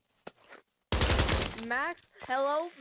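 A rifle fires a loud burst of gunshots.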